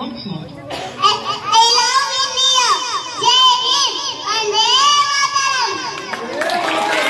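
A young girl speaks in a high, lively voice, heard through a microphone.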